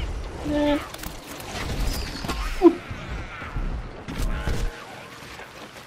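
Cartoon blasts and explosions pop and boom rapidly.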